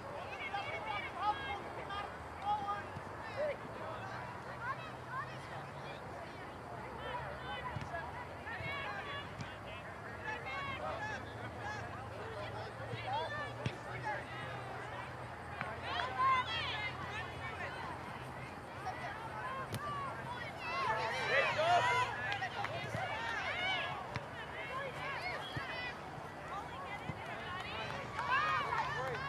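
Young players call out to each other across an outdoor soccer field.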